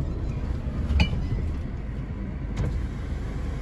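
A vehicle's body rattles and thumps over bumps.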